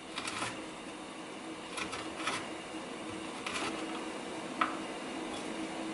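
A knife chops through okra on a wooden board.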